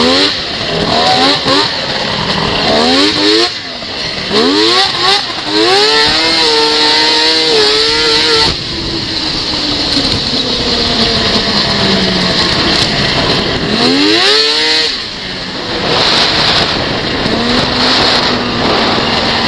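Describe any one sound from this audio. A snowmobile engine roars and revs up and down, close by.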